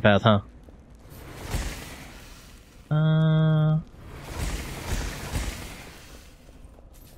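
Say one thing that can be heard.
Magic bolts whoosh as they are fired.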